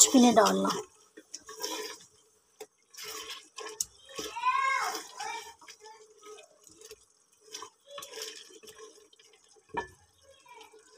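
A metal spatula scrapes and knocks against a pot while stirring.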